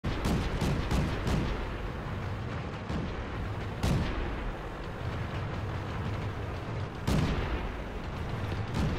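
A tank engine rumbles steadily as it drives.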